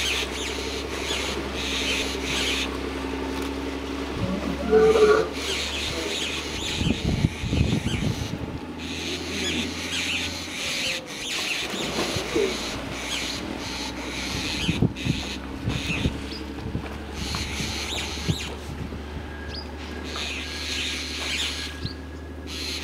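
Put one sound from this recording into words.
Water splashes and churns as hippos thrash about.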